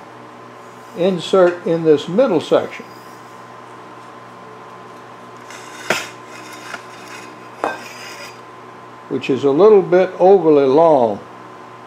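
Metal tubes knock lightly against each other on a wooden table.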